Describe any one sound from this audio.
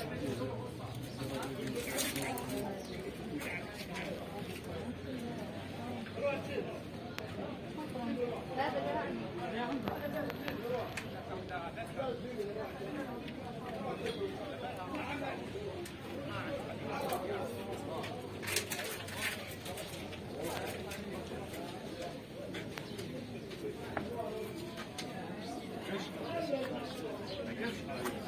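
Men and women talk nearby in a busy, crowded room.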